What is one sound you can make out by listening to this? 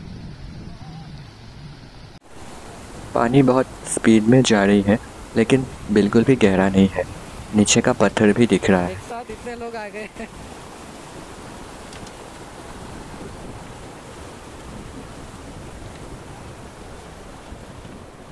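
A river rushes and splashes beneath a bridge.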